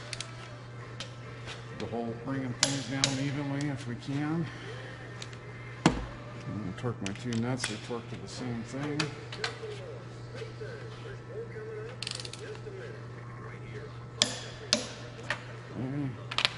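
A wrench clicks and clanks against metal.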